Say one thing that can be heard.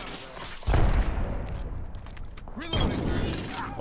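A gun is reloaded with metallic clicks.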